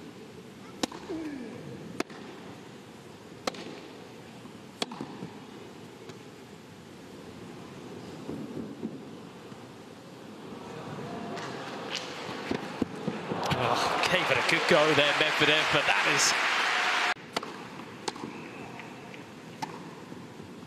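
A tennis ball is struck sharply back and forth with a racket.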